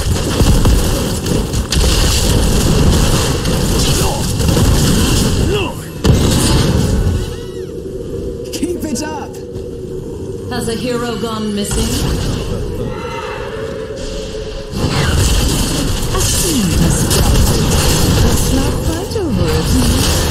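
Game spell effects and combat sounds crackle and boom.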